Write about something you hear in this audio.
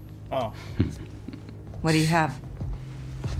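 A man chuckles softly.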